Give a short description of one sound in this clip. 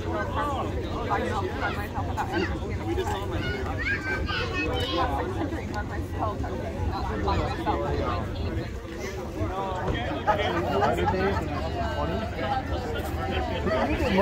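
A crowd murmurs in the background outdoors.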